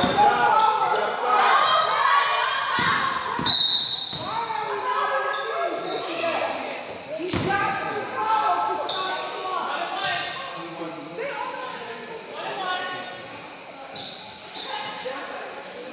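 Women and girls shout and call out in a large echoing gym.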